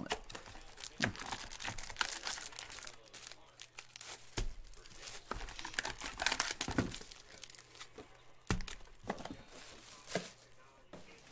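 Foil card packs crinkle as hands tear them open.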